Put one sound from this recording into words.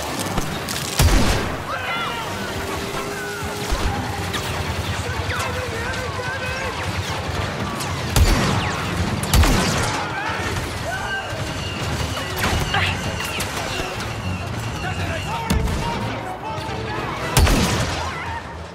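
Explosions boom with loud, heavy blasts.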